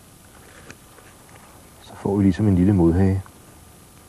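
A knife shaves thin curls off a stick of wood.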